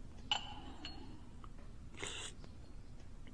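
A man sips tea with a soft slurp.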